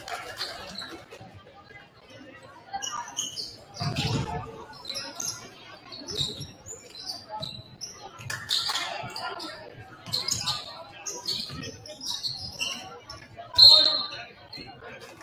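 Basketball shoes squeak sharply on a hardwood floor.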